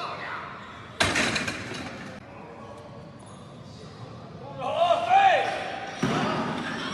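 A heavy barbell clanks down onto metal stands.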